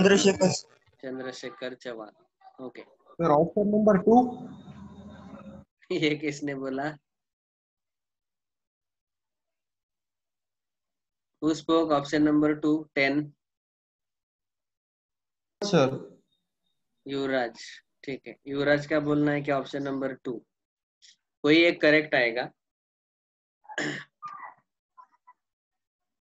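A man explains calmly through a close microphone, with pauses.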